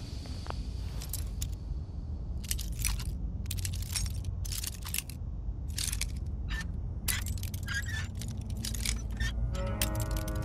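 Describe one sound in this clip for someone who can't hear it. Metal lock picks scrape and click inside a lock.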